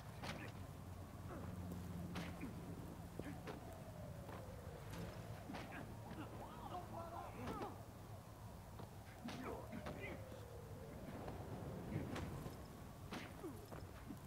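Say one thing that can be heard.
Punches and kicks land with sharp thuds in a fight.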